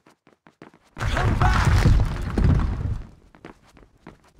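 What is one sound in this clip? A loud crash and rumble of collapsing stone booms through the hall.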